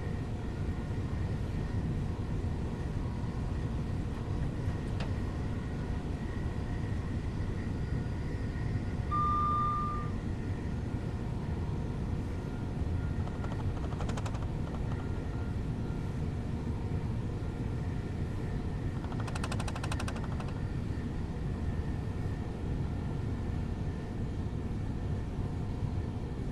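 A train's motor hums steadily as it rumbles along the rails.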